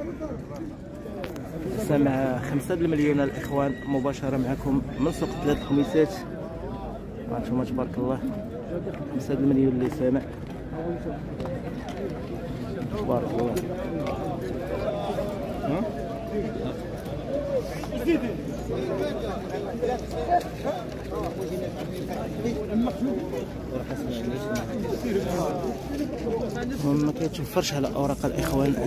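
A crowd of men talks and calls out all around outdoors.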